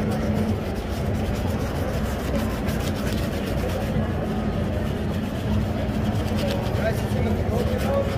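A brush scrubs lathered leather in quick strokes.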